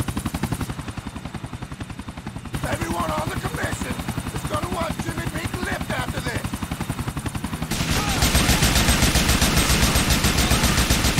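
A helicopter's rotor chops steadily close by.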